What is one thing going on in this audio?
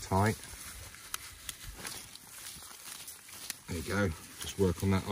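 Gloved hands rustle as they handle a small object.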